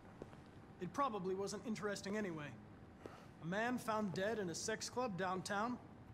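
An older man speaks wearily in a low voice.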